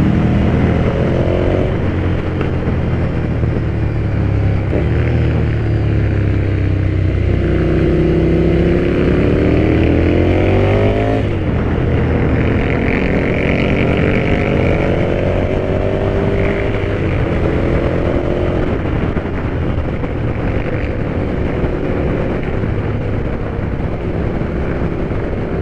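Wind rushes loudly past outdoors.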